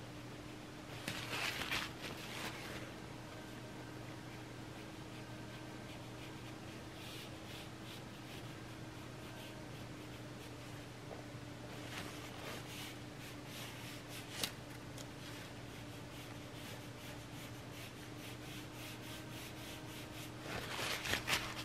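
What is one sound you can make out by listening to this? A paintbrush swishes and taps in a paint tray.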